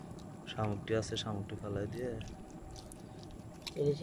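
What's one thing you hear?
Hands pick small fish out of wet mud with a soft squelch.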